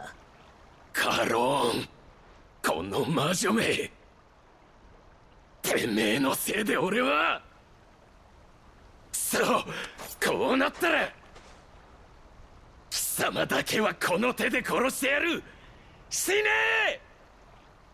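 A man shouts angrily, close by.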